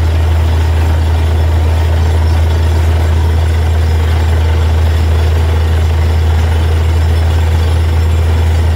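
A drill bit grinds into the ground.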